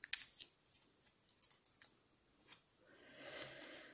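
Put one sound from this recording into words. Wooden pencils click and clatter against each other as they are handled.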